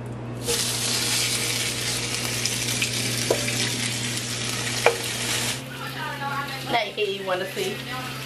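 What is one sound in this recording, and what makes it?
A fork scrapes and taps against a frying pan.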